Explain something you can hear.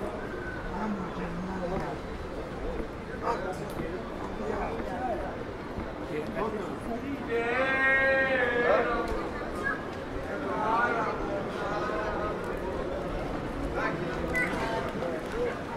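Footsteps tap on paving stones.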